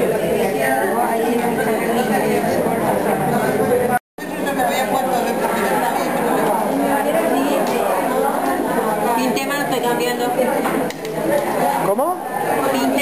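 Several women talk at once nearby.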